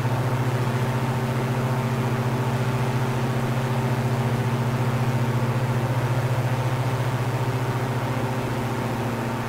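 Wind rushes past a small plane in flight.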